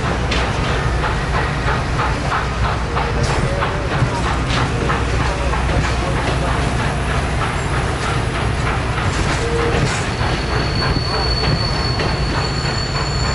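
Passenger train cars roll past close by with a steady rumble.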